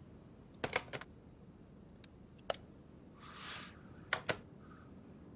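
Short electronic clicks tick sharply.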